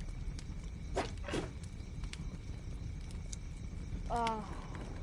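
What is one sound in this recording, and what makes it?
A pickaxe strikes stone with sharp clanks.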